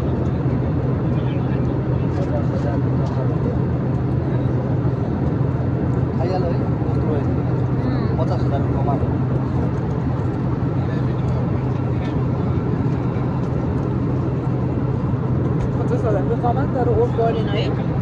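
A steady low engine drone hums throughout.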